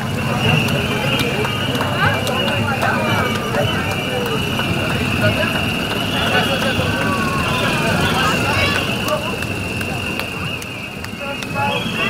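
A crowd chatters and calls out outdoors.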